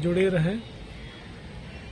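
A man speaks close by, calmly.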